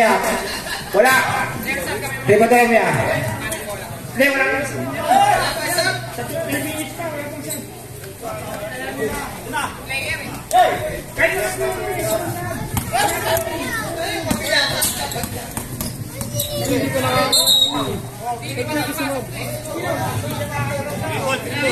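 Young men shout and call out to each other nearby.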